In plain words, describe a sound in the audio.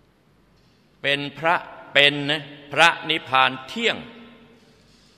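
An elderly man chants in a drawn-out voice.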